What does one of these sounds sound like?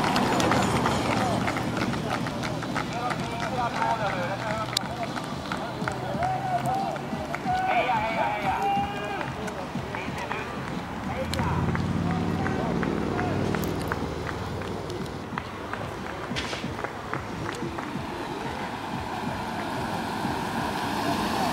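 Footsteps of runners patter on the road.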